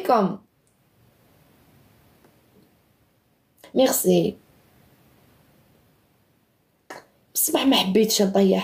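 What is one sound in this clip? A young woman speaks close to a microphone in short, emotional bursts.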